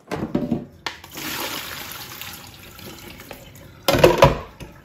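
Water splashes and pours out of a bowl into a sink.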